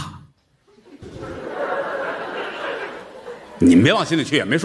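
An audience laughs in a hall.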